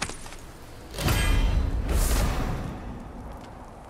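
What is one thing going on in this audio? A heavy metal chest lid swings open with a loud rush.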